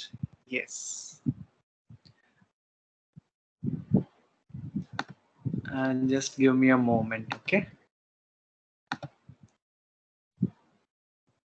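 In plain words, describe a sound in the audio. A man speaks cheerfully over an online call.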